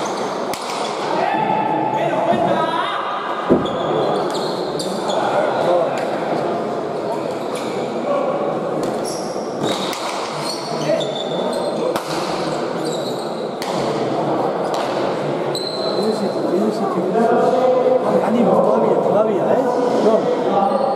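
A crowd of spectators murmurs and chatters in a large echoing hall.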